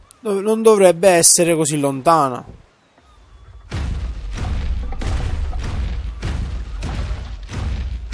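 Heavy footsteps of a large creature thud on the ground.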